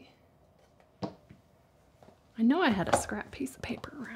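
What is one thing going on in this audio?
Small objects are set down on a wooden table with light taps.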